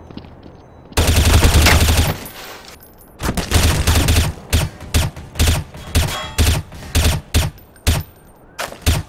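A rifle fires in rapid bursts of loud gunshots.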